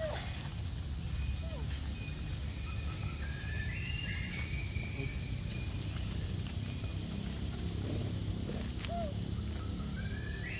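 A monkey munches on a piece of fruit.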